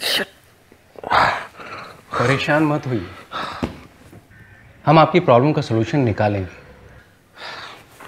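A middle-aged man speaks calmly and reassuringly close by.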